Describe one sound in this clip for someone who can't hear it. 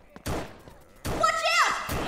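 A revolver fires a shot.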